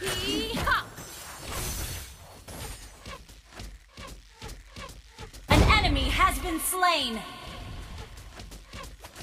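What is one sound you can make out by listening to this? Game spells and weapon strikes crackle and clash in quick bursts.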